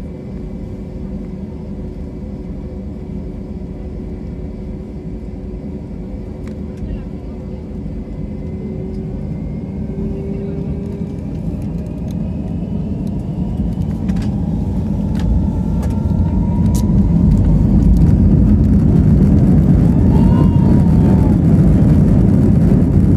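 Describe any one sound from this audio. Wheels rumble and thud over a runway.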